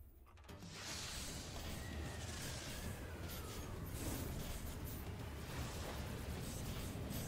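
A strong gust of wind roars and swirls loudly.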